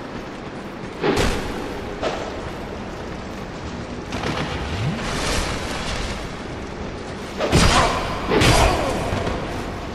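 Weapons clash and strike with sharp metallic blows.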